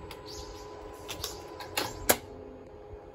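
A ticket clicks and clatters through a ticket gate.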